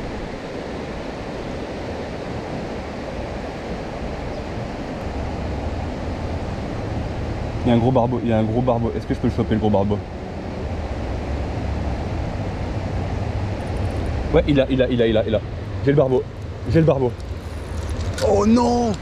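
River water rushes steadily nearby.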